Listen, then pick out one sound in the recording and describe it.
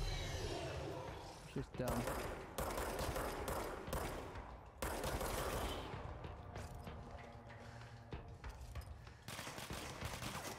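Gunfire rattles in rapid bursts close by.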